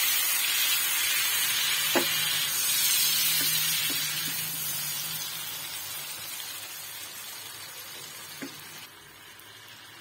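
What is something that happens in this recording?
Liquid sizzles and bubbles in a hot pan, slowly quietening.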